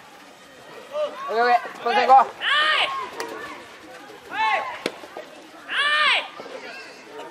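Young men shout and cheer loudly outdoors.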